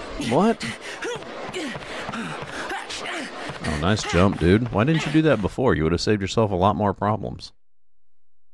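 An elderly man talks with animation into a close microphone.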